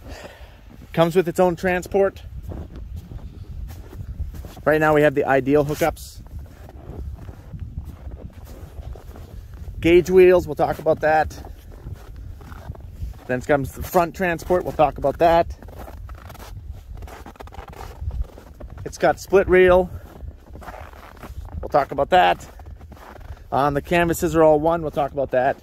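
A man talks calmly close to the microphone.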